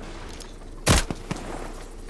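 A gun fires a single sharp shot.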